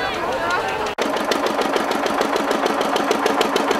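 An old stationary engine chugs with a steady rapid beat.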